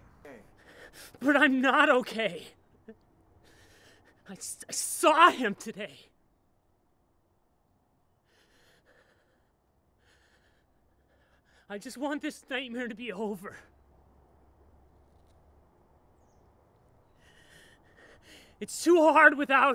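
A young man speaks in strained bursts, close by.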